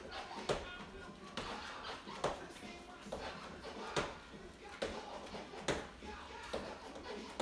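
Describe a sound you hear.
Sneakers thump on a wooden floor in a steady rhythm of jumps.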